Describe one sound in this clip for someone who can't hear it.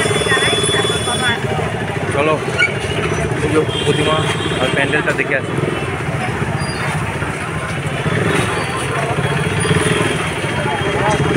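A crowd of people chatters and murmurs all around, outdoors.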